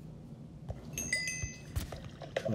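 A phone notification chimes briefly.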